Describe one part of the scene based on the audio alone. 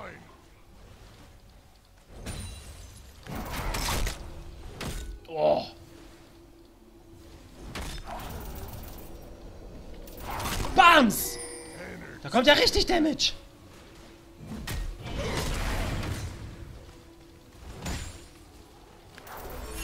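Game spell effects whoosh and zap.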